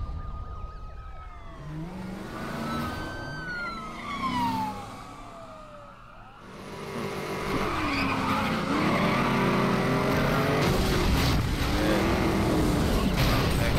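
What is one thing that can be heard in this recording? Police sirens wail and rise and fall in pitch.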